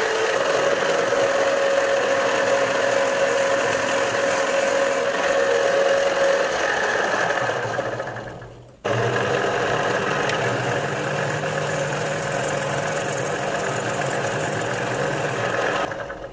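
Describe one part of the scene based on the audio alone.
A drill bit grinds shrilly into brass.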